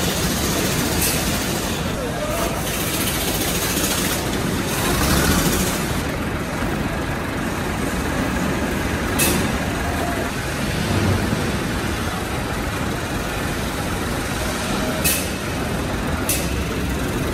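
A power wrench tightens wheel nuts in short bursts.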